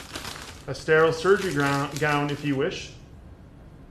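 A man speaks calmly through a surgical mask.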